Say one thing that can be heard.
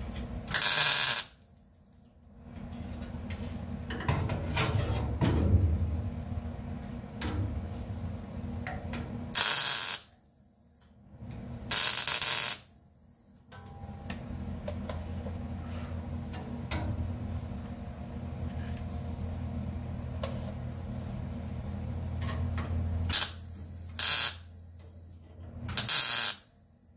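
An arc welder crackles and buzzes in short bursts.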